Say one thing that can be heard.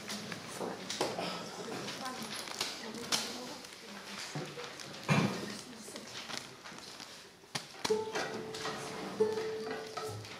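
A boy plucks notes on an acoustic guitar.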